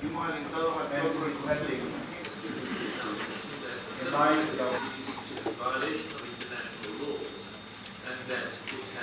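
A man speaks steadily through a microphone in a large room.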